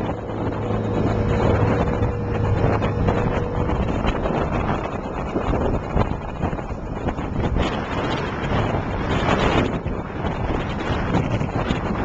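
Skateboard wheels roar steadily on rough pavement.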